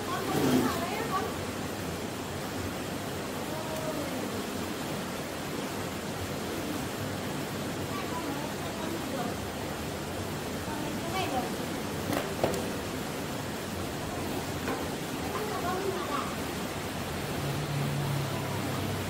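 A river flows steadily nearby.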